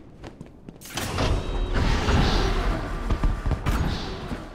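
A heavy metal door creaks and clanks open.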